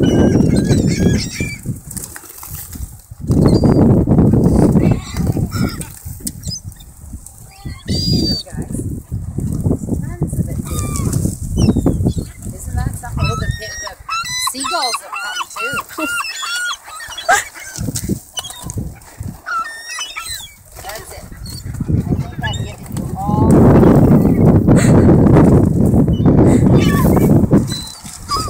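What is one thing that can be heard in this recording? Many birds' wings flap and flutter.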